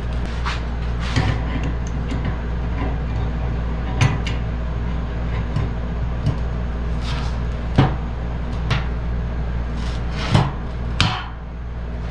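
Metal tools clink and scrape against a metal part.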